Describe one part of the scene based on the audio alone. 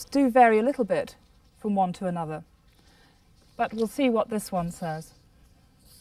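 A woman speaks calmly and clearly, close up.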